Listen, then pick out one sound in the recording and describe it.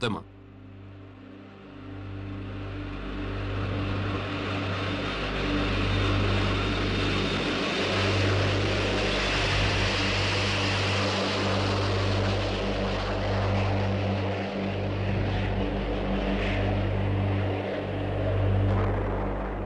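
Jet engines roar loudly as a large airliner takes off and climbs overhead.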